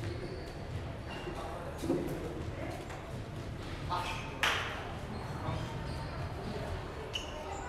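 Footsteps squeak on a sports floor.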